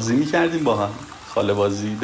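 Hot water trickles from a tap into a glass.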